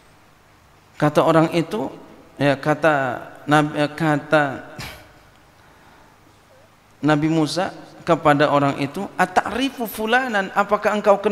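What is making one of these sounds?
A man speaks through a microphone in a calm, chanting voice.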